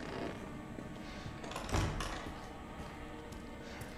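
A heavy metal door swings open with a thud.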